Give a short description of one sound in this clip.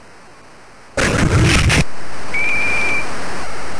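Football players collide in a thudding tackle.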